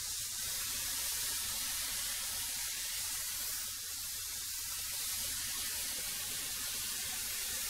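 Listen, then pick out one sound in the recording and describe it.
A thickness planer roars loudly as it shaves a wooden board.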